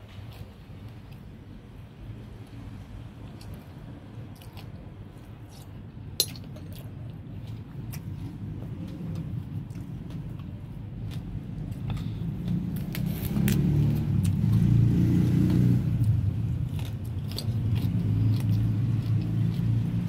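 A spoon clinks against a bowl.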